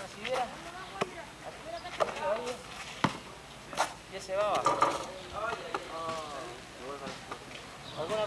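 A basketball bounces on hard ground.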